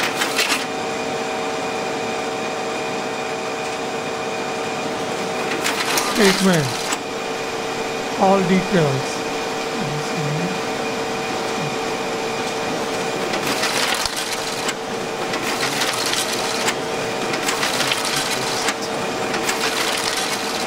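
A printer hums steadily as it runs.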